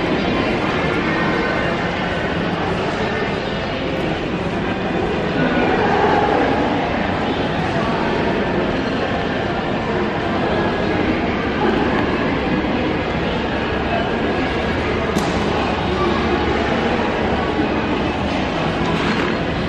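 A large indoor hall hums with a steady crowd murmur.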